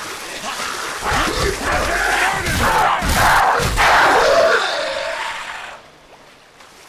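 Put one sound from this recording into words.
A creature snarls and growls close by.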